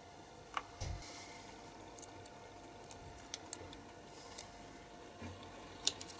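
Small plastic parts click and tap as fingers handle them.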